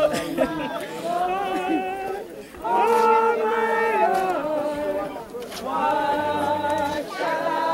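A group of women and men sing a slow hymn together outdoors.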